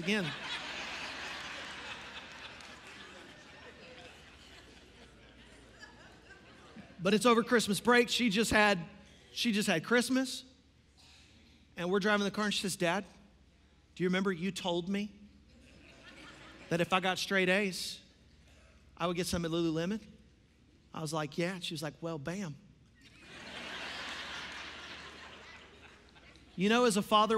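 A crowd laughs in a large hall.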